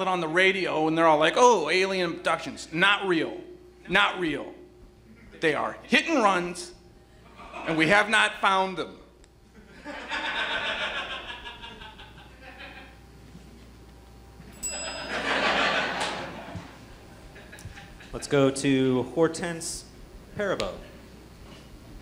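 A man speaks loudly and with animation on a stage in a large hall.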